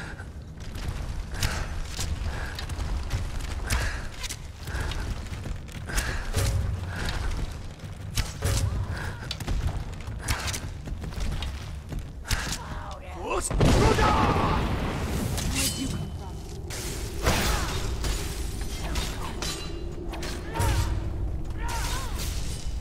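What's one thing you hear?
Arrows thud into enemies with sharp knocks.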